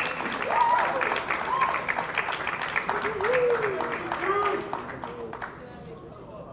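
An audience applauds and cheers in a large hall.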